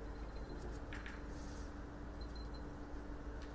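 Billiard balls click together on a table.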